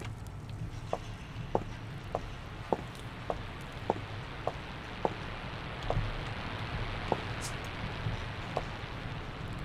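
Footsteps tread steadily on hard ground.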